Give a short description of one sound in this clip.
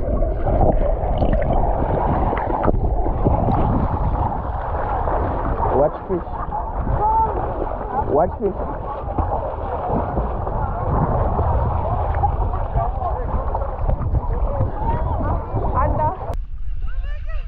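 Water splashes and bubbles loudly close by as a swimmer kicks.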